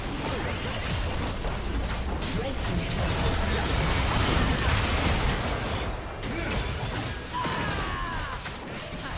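Magic blasts crackle and boom in a hectic battle.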